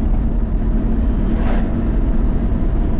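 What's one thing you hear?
A car passes by in the other direction.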